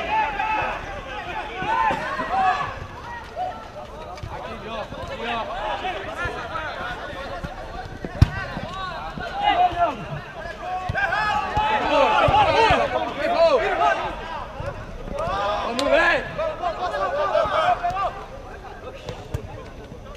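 Young men shout and call out to each other across an open pitch.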